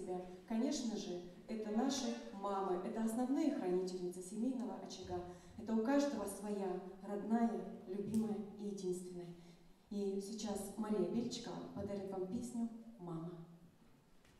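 A young woman sings slowly through a microphone.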